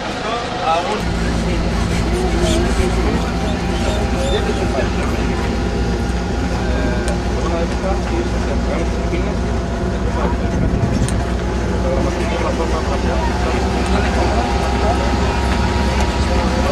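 An open vehicle's engine rumbles steadily as it drives along.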